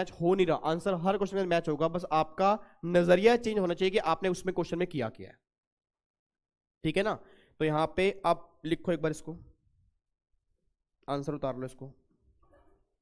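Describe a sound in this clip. A man lectures with animation into a microphone.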